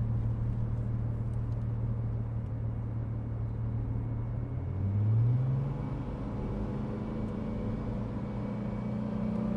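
A car engine hums steadily and rises in pitch as the car speeds up.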